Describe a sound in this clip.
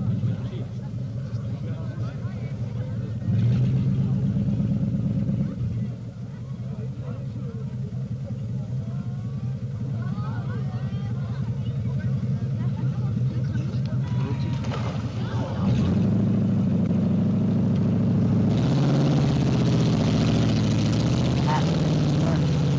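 An engine rumbles and revs hard.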